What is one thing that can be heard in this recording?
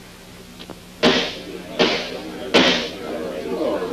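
A gavel knocks sharply on wood several times.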